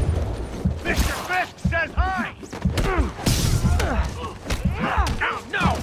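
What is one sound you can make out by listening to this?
Webs shoot with sharp whooshing zips.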